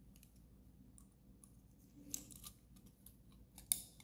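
Small electronic parts rustle and tap faintly on a table.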